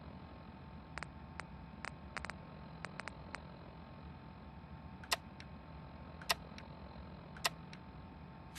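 A handheld device gives short clicks in quick succession.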